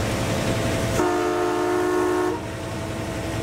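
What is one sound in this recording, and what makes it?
A train horn sounds loudly.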